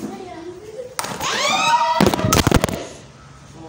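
A child squeals loudly at close range.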